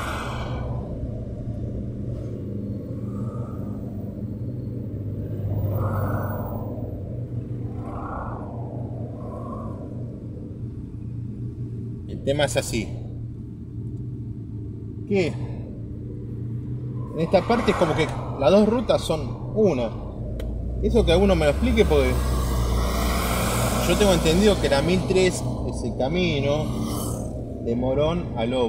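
A bus engine idles nearby with a low steady rumble.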